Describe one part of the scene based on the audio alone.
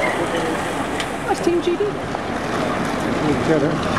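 Bicycle wheels and chains whir as a pack of cyclists rides by.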